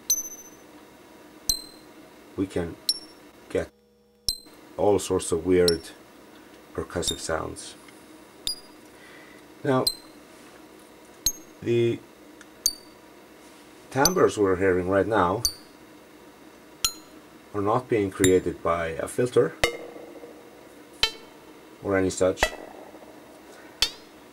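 Sharp electronic clicks tick now and then.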